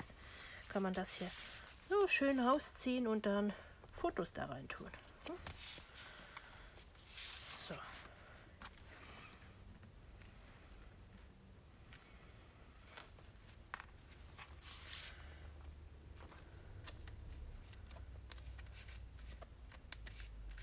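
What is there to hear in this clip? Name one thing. Paper rustles and slides as it is handled.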